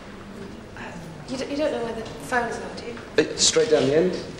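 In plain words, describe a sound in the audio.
A young woman speaks briefly.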